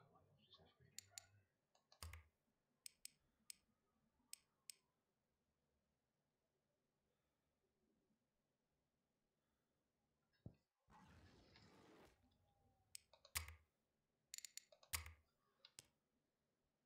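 Short clicks sound as menu options are selected.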